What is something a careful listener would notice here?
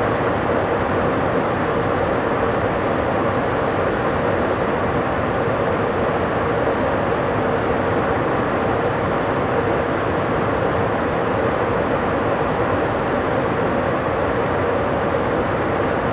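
A train rumbles steadily along the tracks at high speed.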